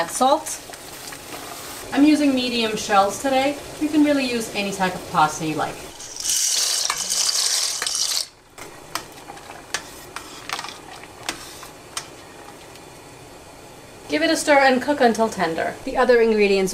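Water bubbles at a rolling boil.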